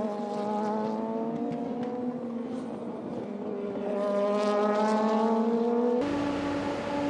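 A racing car engine roars at high revs as the car speeds past.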